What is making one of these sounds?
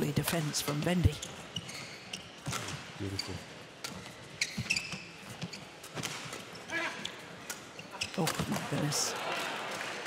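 Shuttlecocks are struck sharply by rackets in a quick rally.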